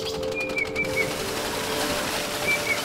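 Water gushes and splashes heavily from a pipe.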